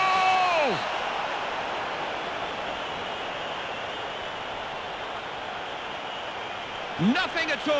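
A crowd cheers loudly after a goal.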